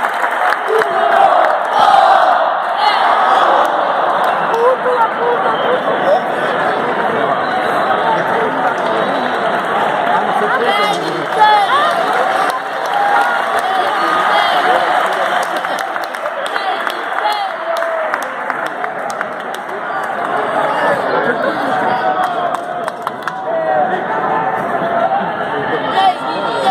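A large crowd cheers and shouts steadily in a big echoing arena.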